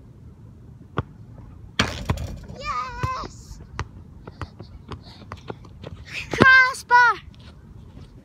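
Feet thump as a child bounces up and down.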